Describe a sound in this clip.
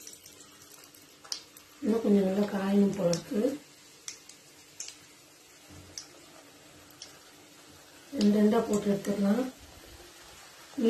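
Hot oil sizzles and crackles in a pan.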